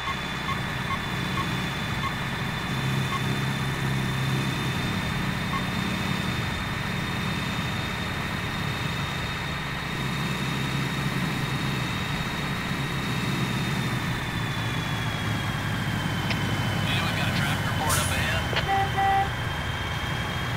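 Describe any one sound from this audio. A truck engine drones steadily at highway speed.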